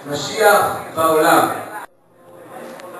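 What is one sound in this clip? A man speaks loudly into a microphone through loudspeakers.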